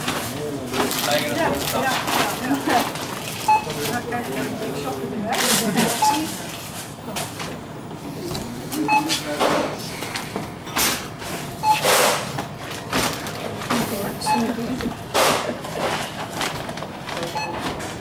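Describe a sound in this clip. Groceries clatter and rustle on a checkout counter.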